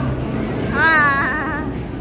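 A bowling ball rumbles down a lane.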